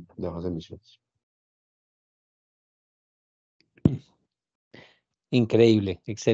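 A young man speaks calmly over an online call, in short bursts.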